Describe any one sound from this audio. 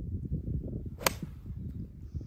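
A golf iron strikes a ball off turf with a sharp click.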